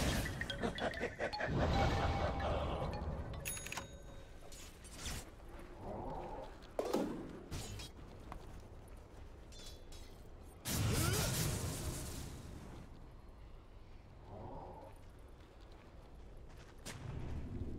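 Game spells burst and crackle during a fight.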